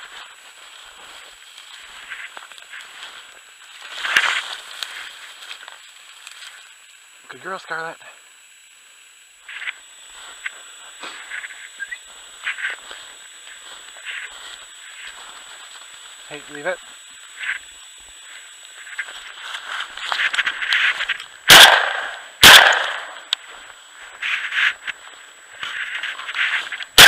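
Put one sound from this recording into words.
Footsteps crunch through snow and dry grass.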